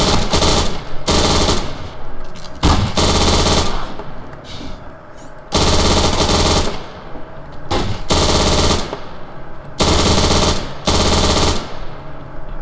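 Automatic gunfire rattles in long bursts.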